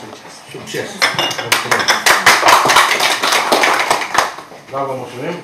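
People applaud in a small room.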